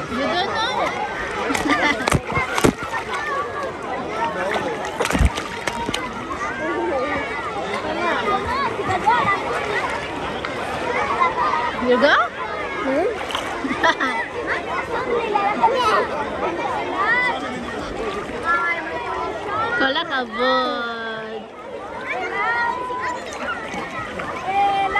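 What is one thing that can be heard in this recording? A young child squeals and laughs close by.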